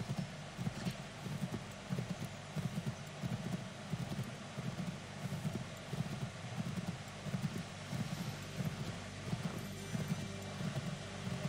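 Horse hooves gallop steadily on a dirt road.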